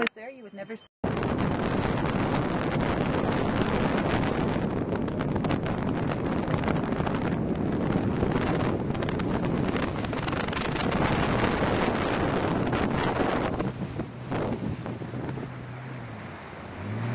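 A boat motor drones steadily.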